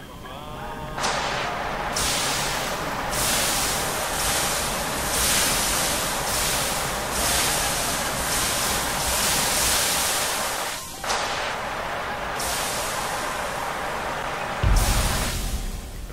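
A fire extinguisher sprays with a loud, steady hiss in bursts.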